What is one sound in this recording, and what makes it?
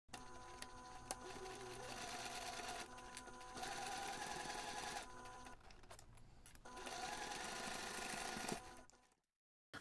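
A sewing machine hums and stitches steadily.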